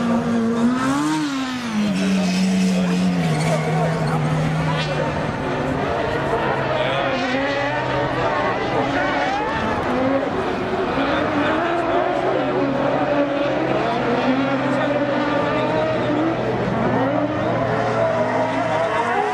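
Racing car engines roar and rev across an open track.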